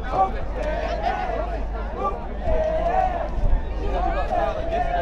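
A crowd of adults chatters and calls out nearby outdoors.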